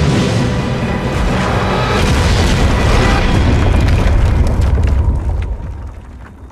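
A loud crash and roar of an aircraft wreck tearing apart.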